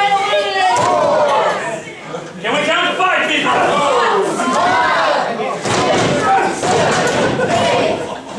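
A crowd of spectators shouts and cheers loudly nearby in an echoing hall.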